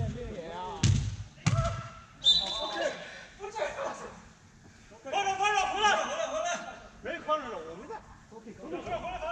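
Young players shout to each other in a large echoing hall.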